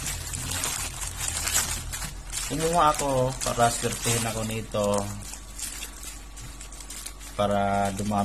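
Plastic packaging rustles and crinkles in a person's hands.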